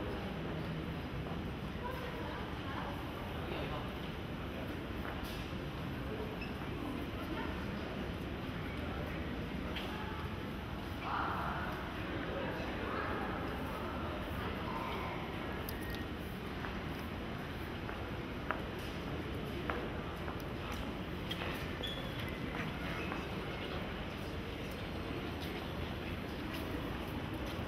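A crowd murmurs softly throughout a large echoing hall.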